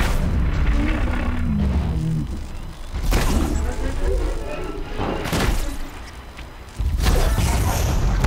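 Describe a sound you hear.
Arrows whoosh as a bow fires.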